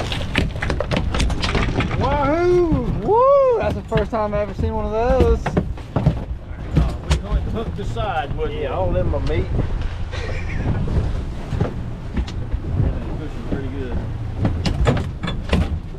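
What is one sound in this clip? A large fish thumps and flaps against a boat deck.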